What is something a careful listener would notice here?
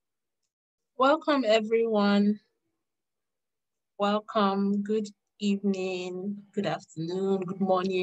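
A young woman speaks calmly over an online call.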